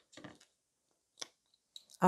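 A small plastic jar lid twists and clicks.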